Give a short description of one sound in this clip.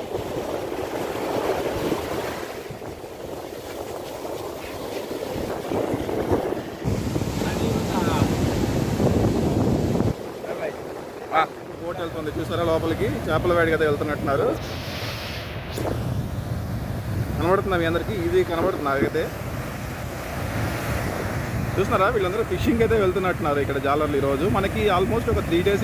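Waves wash and break on the shore.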